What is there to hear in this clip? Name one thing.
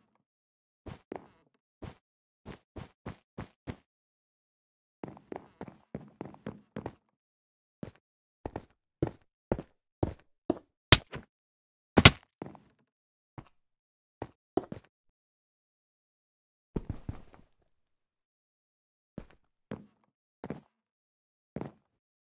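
Footsteps patter quickly across wooden boards.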